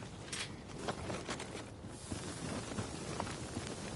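A gun fires with a sharp crack.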